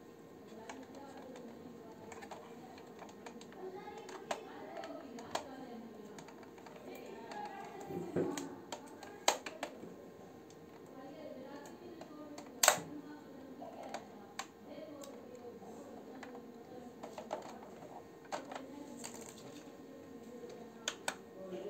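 Small plastic parts click and clack as hands handle a toy truck.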